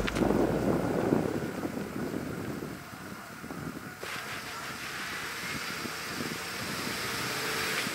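Tyres crunch slowly over packed snow.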